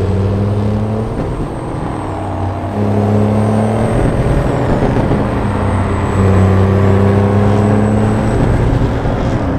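A truck engine drones steadily, dipping and rising in pitch as it shifts gears.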